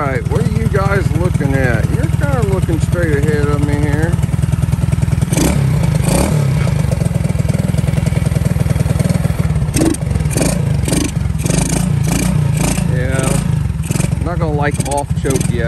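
A motorcycle engine idles with a steady rapid putter.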